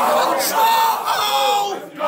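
A man shouts loudly in excitement.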